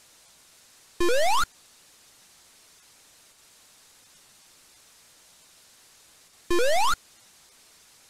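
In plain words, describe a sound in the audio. A short electronic jump sound rises quickly in pitch.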